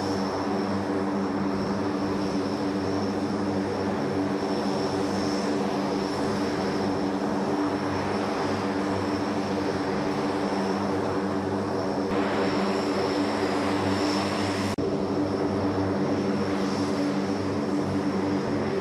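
Propeller engines of a large aircraft drone loudly and steadily nearby.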